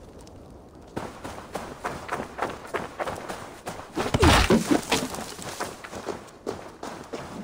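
Footsteps run quickly over a dirt path.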